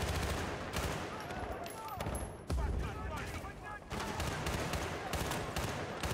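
A rifle is reloaded with a metallic clack.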